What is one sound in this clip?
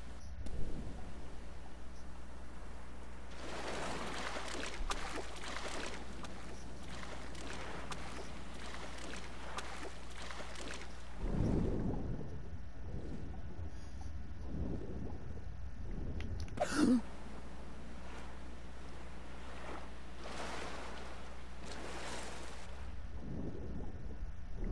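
Water splashes and sloshes as a swimmer paddles at the surface.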